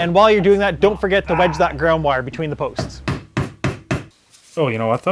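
A wooden mallet taps sharply on wood several times in quick succession.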